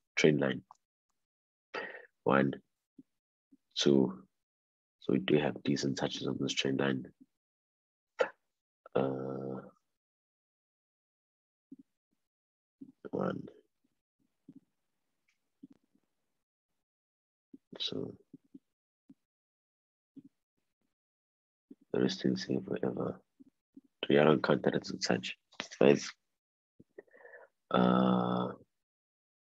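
A young man talks calmly over an online call, in short bursts with pauses.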